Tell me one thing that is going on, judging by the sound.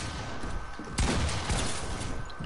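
A gun fires in bursts of shots.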